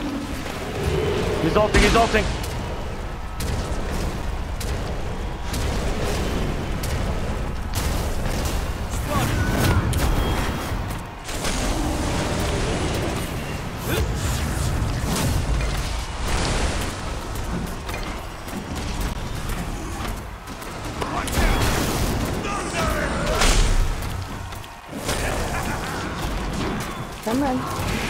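Magic blasts, whooshes and hits crackle in a busy fantasy battle game.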